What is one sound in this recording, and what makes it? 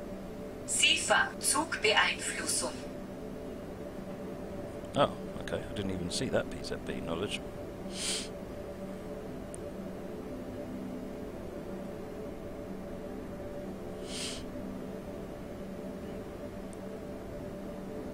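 A train's engine hums steadily.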